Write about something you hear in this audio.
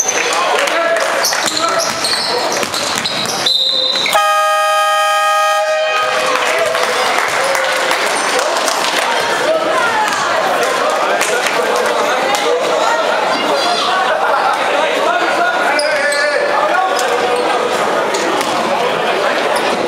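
A crowd cheers and shouts in an echoing indoor hall.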